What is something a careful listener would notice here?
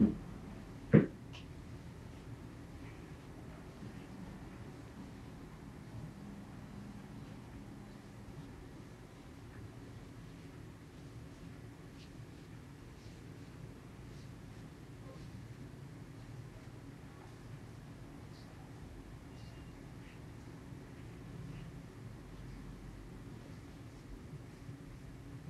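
Hands softly rub and knead over cloth.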